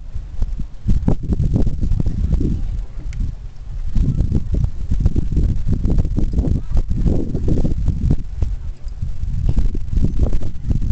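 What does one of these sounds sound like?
Gusty wind rumbles across the microphone outdoors.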